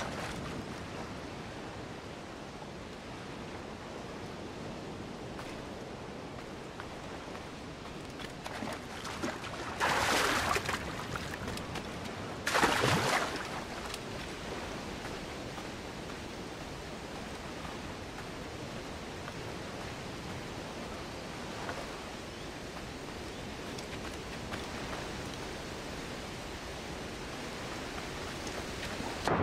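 Waves lap gently against a sandy shore.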